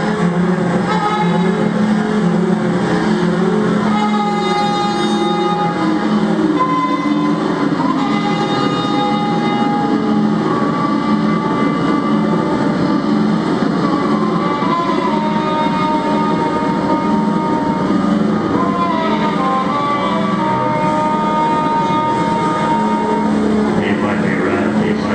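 A clarinet plays long, held notes.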